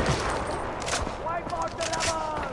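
A rifle magazine clicks into place as a gun is reloaded.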